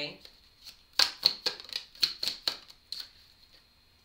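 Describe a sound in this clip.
Cards slap and riffle as they are shuffled.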